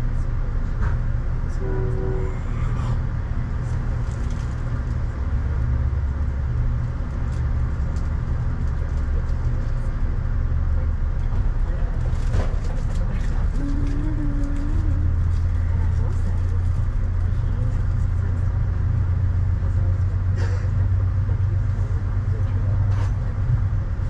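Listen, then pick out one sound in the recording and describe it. A car engine rumbles low inside a vehicle.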